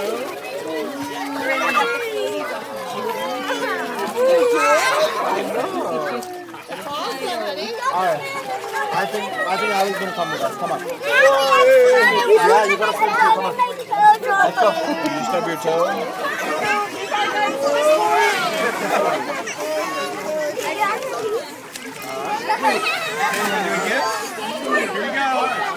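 Many people chatter and laugh around a pool outdoors.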